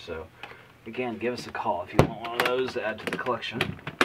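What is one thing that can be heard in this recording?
A guitar case lid thumps shut.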